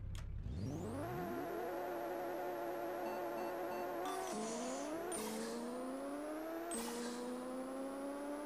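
A racing car engine accelerates hard, its pitch rising and dropping with each gear change.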